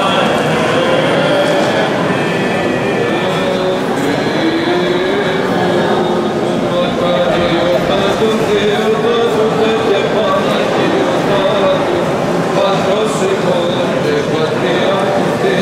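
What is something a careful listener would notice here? Men chant slowly together, echoing in a large reverberant hall.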